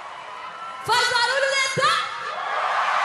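A young woman sings loudly into a microphone.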